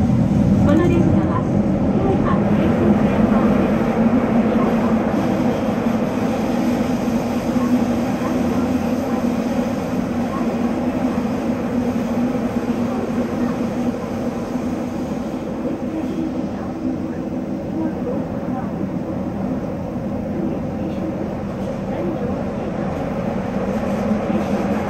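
A train rumbles and roars steadily through a tunnel.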